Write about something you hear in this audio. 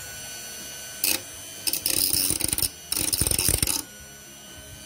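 A cutting disc grinds against metal in harsh bursts.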